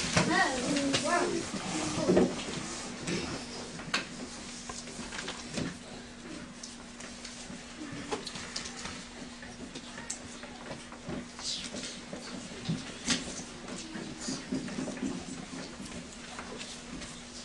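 Children talk and murmur quietly nearby.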